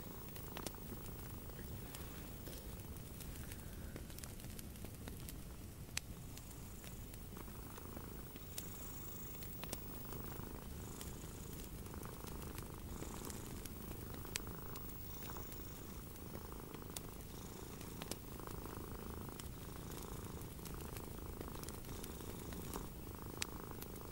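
Yarn rustles softly as hands crochet.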